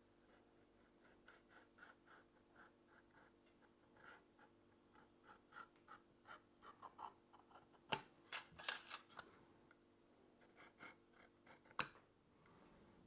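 A metal point scratches and taps on a brass plate.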